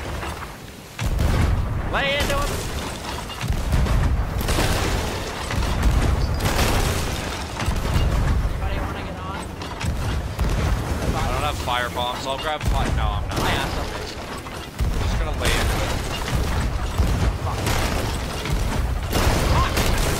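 A cannon fires with loud booming blasts.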